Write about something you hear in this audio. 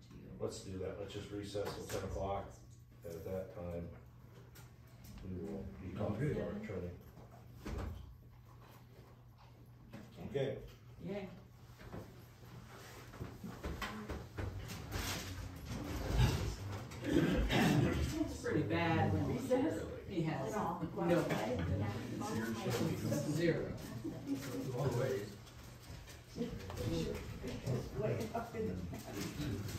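An elderly man speaks calmly across a quiet room.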